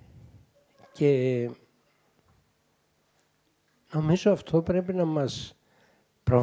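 An elderly man reads aloud slowly and calmly, heard close through a microphone.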